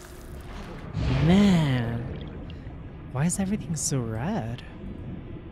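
A young woman exclaims and hums with animation into a microphone.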